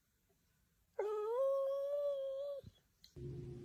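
A dog howls with a long, wavering cry.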